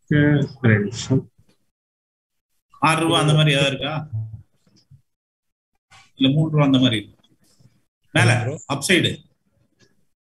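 A man speaks calmly in short bursts through an online call.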